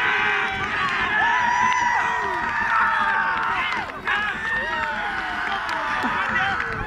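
Young men shout and cheer excitedly outdoors in the distance.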